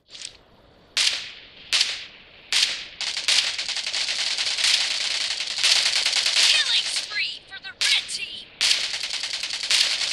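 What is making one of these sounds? Gunfire bursts from a mobile game play through a small phone speaker.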